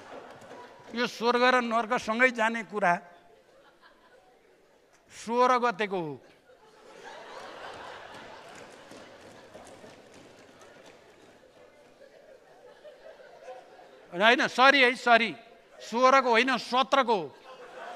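A man speaks loudly and forcefully through a microphone in a large hall.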